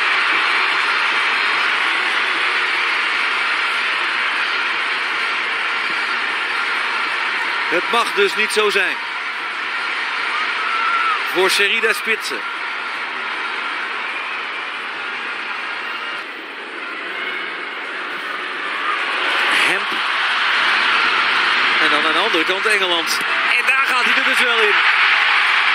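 A large stadium crowd roars and chants throughout.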